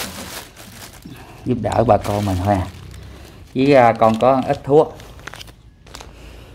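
A plastic bag rustles and crinkles as hands rummage through it.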